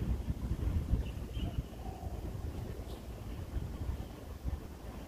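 Wind rumbles and buffets outdoors.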